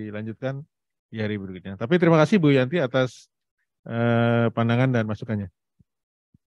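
An older man speaks calmly into a microphone, heard over an online call.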